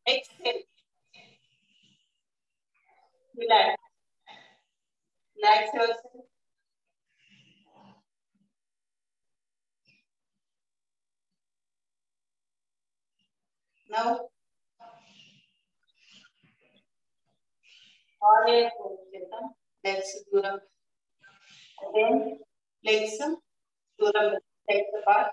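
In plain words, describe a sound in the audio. A woman speaks calmly close by, giving instructions in short bursts.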